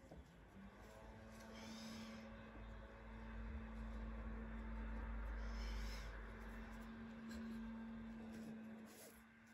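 Cord rustles and slides as hands pull it through a braid.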